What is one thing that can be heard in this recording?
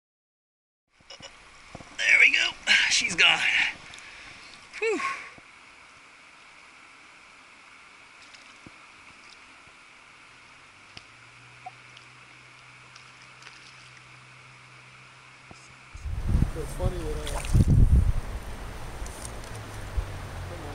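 River water flows and splashes.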